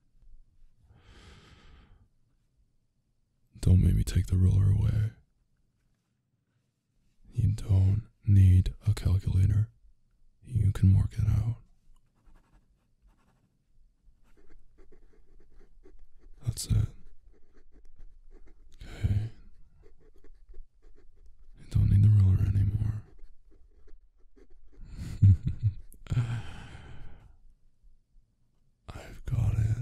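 A young man speaks softly and teasingly in a deep voice, close to a microphone.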